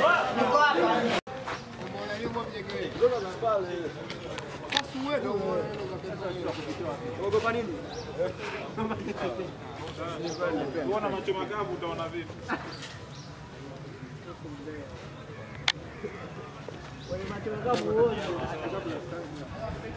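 Several young men talk over one another close by, outdoors.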